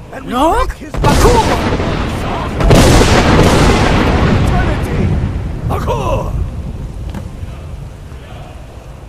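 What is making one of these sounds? A magical blast roars and whooshes loudly, then slowly fades.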